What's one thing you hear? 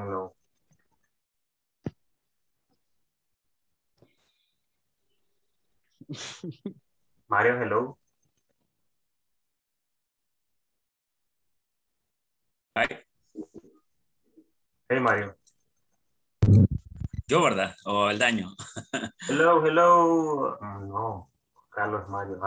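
A man speaks through an online call, in short bursts with pauses.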